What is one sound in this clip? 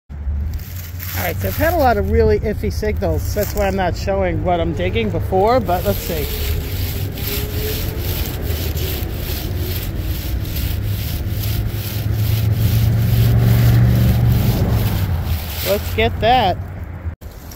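A metal detector beeps and chirps as it sweeps over leaves.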